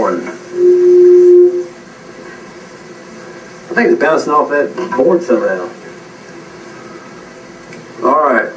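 An elderly man speaks to an audience through a microphone.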